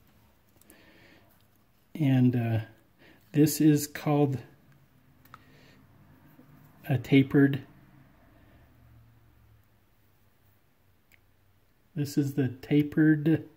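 Small metal washers click softly against each other.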